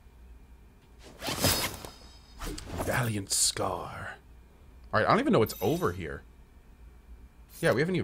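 A man talks into a microphone with animation, close up.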